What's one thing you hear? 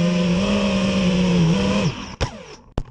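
A drone's propellers whine loudly and then stop.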